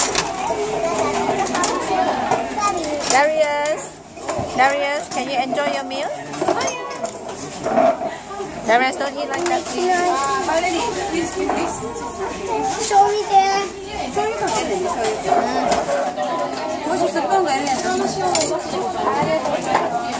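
Dishes and cutlery clink on a table.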